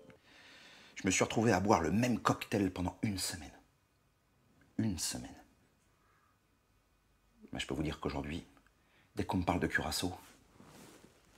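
A man speaks calmly and earnestly close by, in short bursts with pauses.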